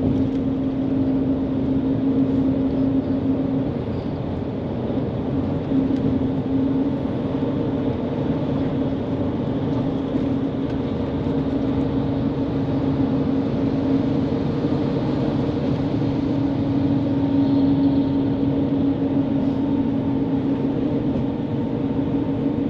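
A bus engine hums steadily from inside.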